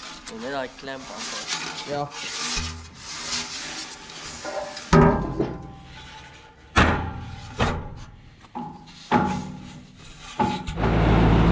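A metal pipe clanks and knocks as it is handled.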